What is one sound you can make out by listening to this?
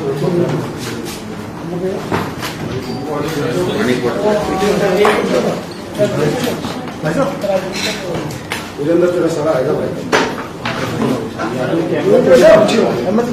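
A middle-aged man speaks calmly into microphones close by.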